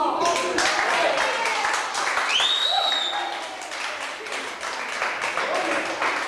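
Children and adults on a stage cheer and shout excitedly.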